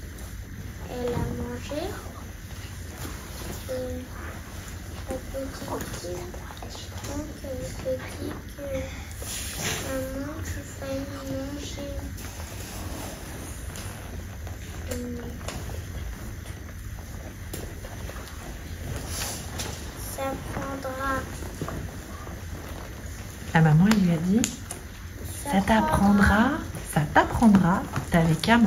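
A young boy speaks softly and hesitantly, close by.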